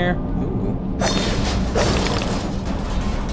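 A loud crashing burst shatters debris with a bright crackle.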